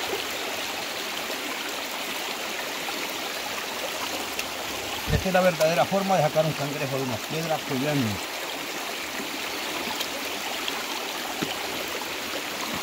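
A stream babbles steadily over rocks.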